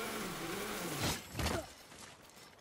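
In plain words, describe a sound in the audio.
A heavy body drops and lands with a thud.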